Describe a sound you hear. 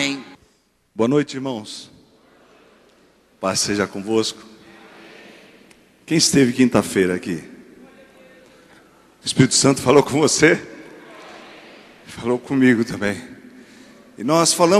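A man speaks with animation into a microphone through loudspeakers, in a large echoing hall.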